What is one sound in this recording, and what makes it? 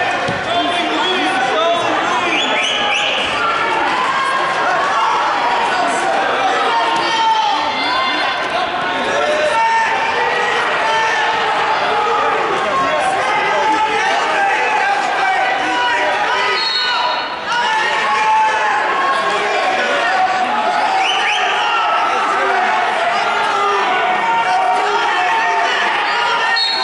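A crowd of spectators talks and cheers in a large echoing hall.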